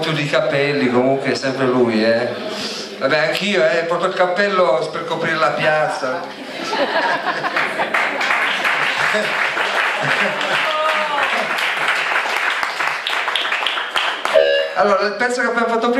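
A band plays loud rock music live on stage.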